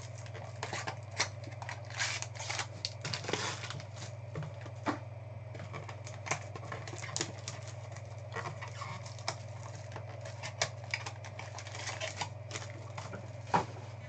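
Plastic card packs crinkle and rustle in hands.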